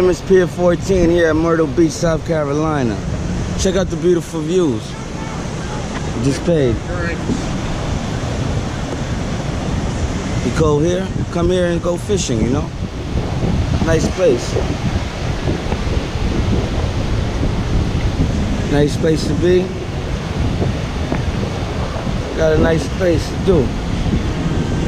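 A man talks close by, in short bursts.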